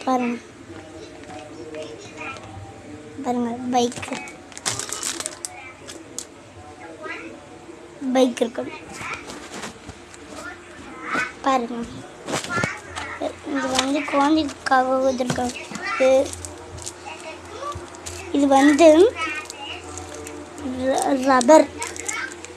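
A young boy talks close to the microphone.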